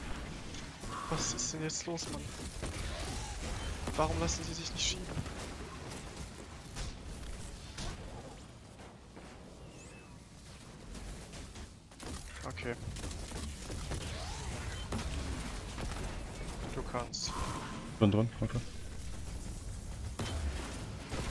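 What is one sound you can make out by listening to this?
Game guns fire in bursts with loud, sharp blasts.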